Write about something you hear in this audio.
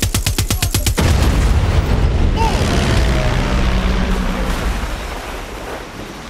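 A plane explodes with a loud, rumbling blast that slowly fades.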